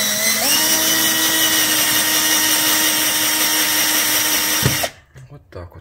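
A cordless drill whirs steadily, driving a screw.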